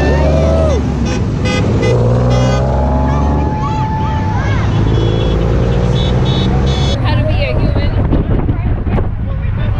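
Traffic drives past on a road close by.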